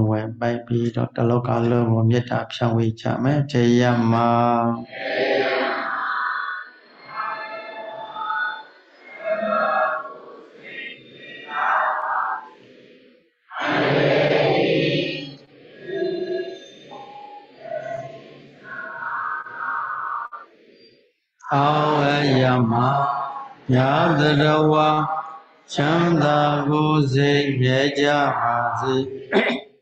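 A large group of people chants together in unison, heard through an online call.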